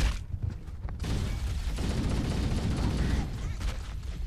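Gunfire crackles in a loud burst.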